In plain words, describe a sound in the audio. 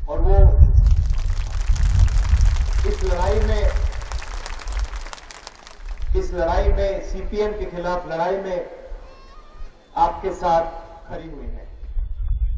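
A young man speaks forcefully through a loudspeaker outdoors.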